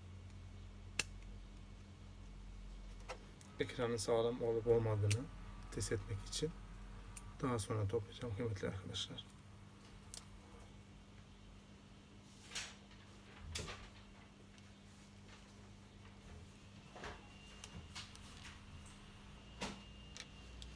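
A plastic phone casing clicks and snaps as it is pried apart.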